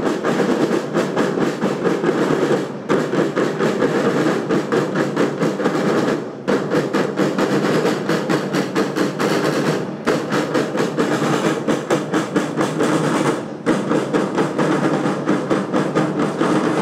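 A marching drum corps beats snare drums in a fast, steady rhythm outdoors.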